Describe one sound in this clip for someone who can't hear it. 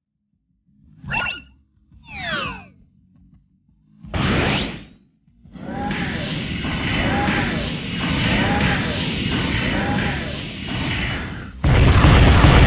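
Game sound effects whoosh and zap.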